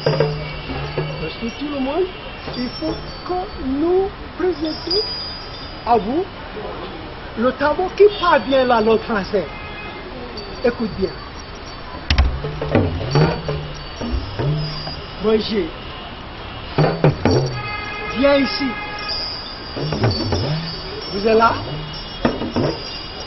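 Men beat talking drums with curved sticks, the drums bending in pitch.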